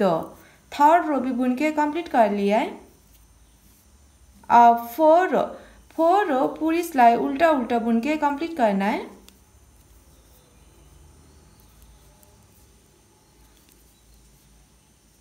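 Knitting needles click and scrape softly against each other.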